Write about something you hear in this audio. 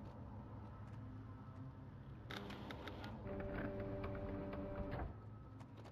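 Keys clatter softly as someone types on a keyboard.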